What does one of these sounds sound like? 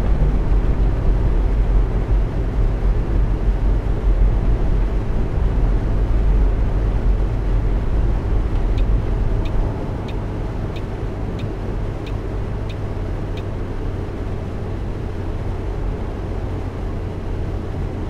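A bus engine hums low and steady as it drives.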